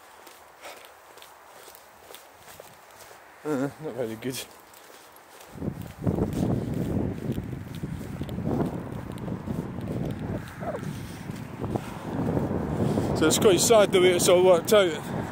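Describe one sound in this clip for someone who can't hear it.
Footsteps walk along a pavement.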